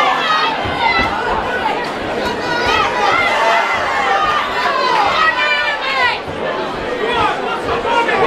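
Boxing gloves thud against pads and bodies.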